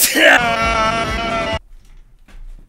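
A young man shouts loudly close to a microphone.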